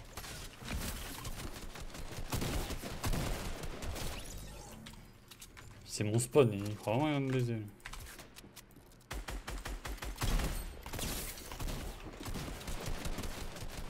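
Gunshots crack rapidly from a game.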